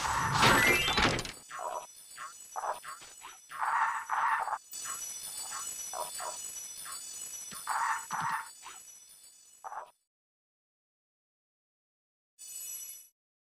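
Bright video game chimes and whooshes sound in quick bursts.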